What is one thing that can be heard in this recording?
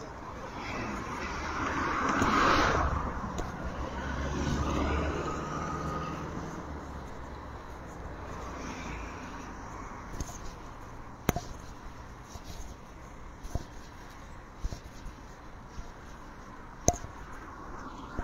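Cars pass by on a road outdoors.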